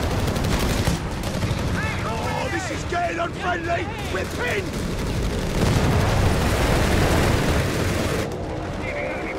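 Gunfire and explosions crackle in a battle.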